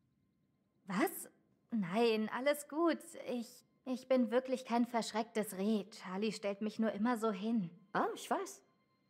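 A young woman speaks with animation, close by.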